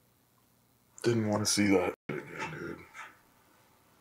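A young man mutters in a low, dejected voice.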